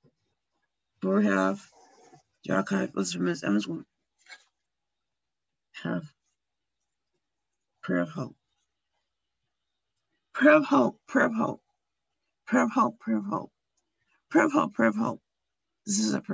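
A woman reads aloud slowly over an online call.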